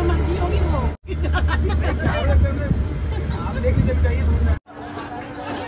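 A woman talks and laughs cheerfully up close.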